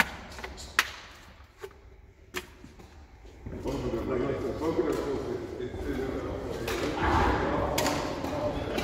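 Badminton rackets strike a shuttlecock with sharp pops in an echoing hall.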